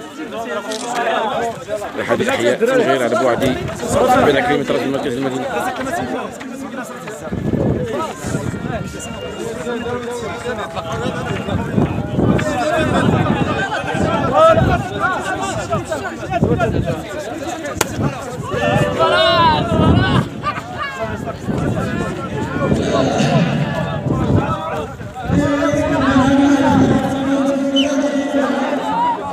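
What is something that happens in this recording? Young men talk and call out over one another outdoors.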